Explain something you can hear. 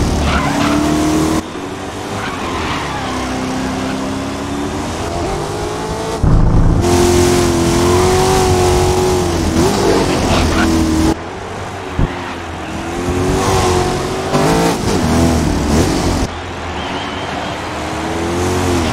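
A racing car engine roars and revs up and down through the gears.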